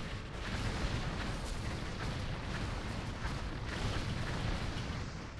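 Spell effects crackle and boom in a busy fight.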